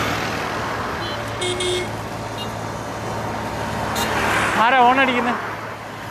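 A motor scooter engine hums as it rides by.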